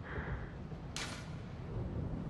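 A fist knocks on a heavy wooden door.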